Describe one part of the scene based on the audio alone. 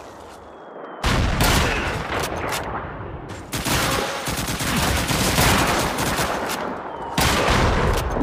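A submachine gun fires loud, rapid bursts of gunshots.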